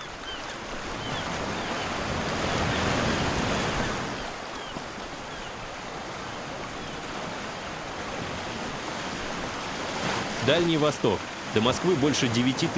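Ocean waves crash and roar.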